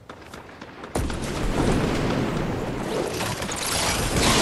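Wind rushes loudly past during a glide.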